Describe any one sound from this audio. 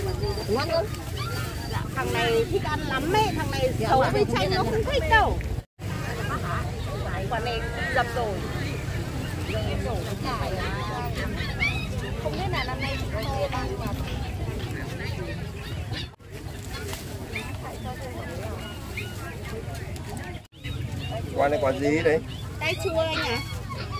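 A plastic bag rustles as fruit is dropped in.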